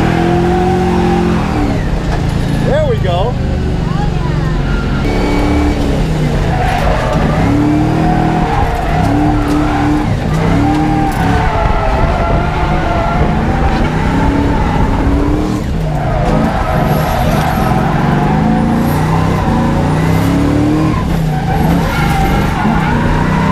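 A car engine roars loudly, revving up and down throughout.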